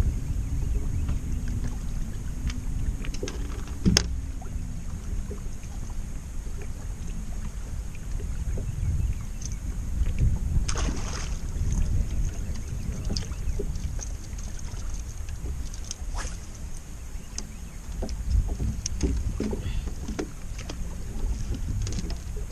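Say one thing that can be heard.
Wind blusters across open water.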